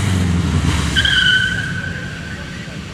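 Tyres screech briefly on asphalt.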